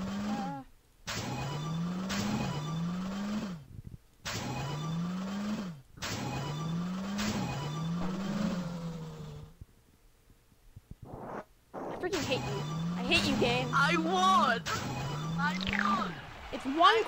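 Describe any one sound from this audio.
Small racing car engines whine upward in short, repeated revs.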